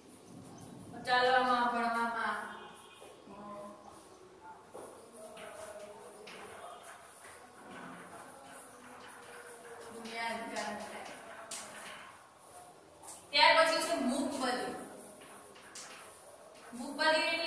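A woman speaks clearly and calmly, as if teaching.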